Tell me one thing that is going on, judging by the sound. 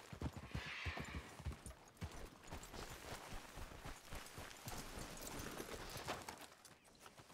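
Horse hooves thud on rough ground at a trot.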